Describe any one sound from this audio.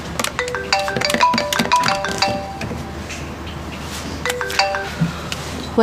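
Phone keypad tones beep in quick succession.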